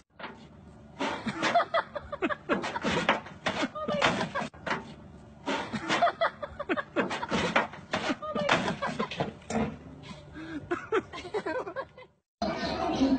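A metal wheelbarrow clatters and bangs as goats knock it over.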